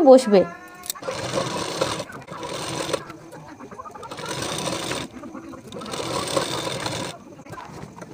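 A sewing machine whirs in short bursts as it stitches fabric.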